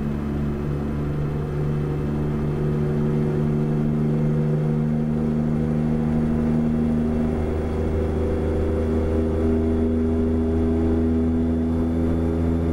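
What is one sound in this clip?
A truck engine drones steadily, its pitch shifting as it changes gear.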